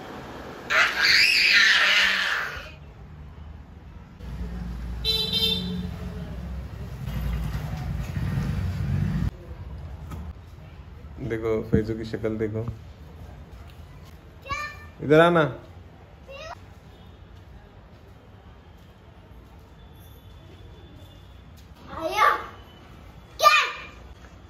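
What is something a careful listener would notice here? A young child shrieks loudly and excitedly close by.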